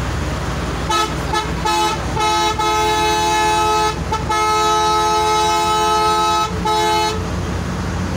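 A bus horn blares repeatedly while overtaking.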